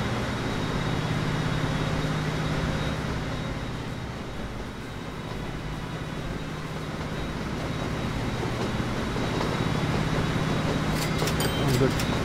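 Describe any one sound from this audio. A train rumbles along the tracks with a steady low drone.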